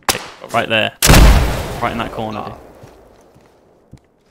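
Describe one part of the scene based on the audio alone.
An explosion bursts close by with a loud boom, then fades.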